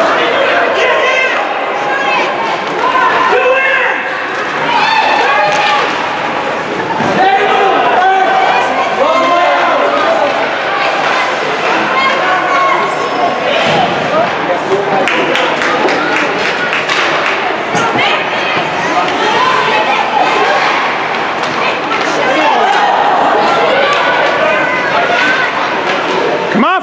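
A crowd of spectators chatters and shouts in a large echoing rink.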